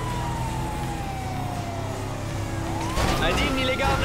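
A car crashes into a motorbike with a thud.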